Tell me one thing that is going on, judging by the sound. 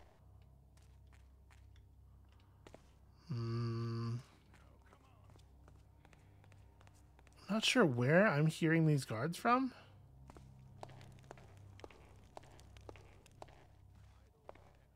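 Footsteps tap softly on a stone floor.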